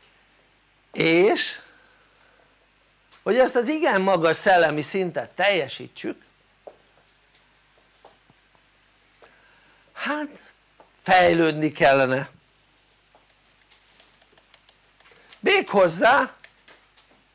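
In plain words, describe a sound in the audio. An elderly man speaks calmly in bursts with pauses, close to a microphone.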